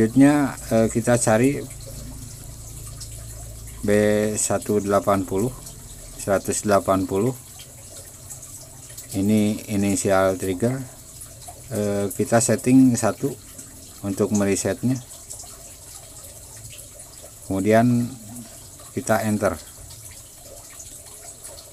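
Buttons on a control panel click softly as they are pressed.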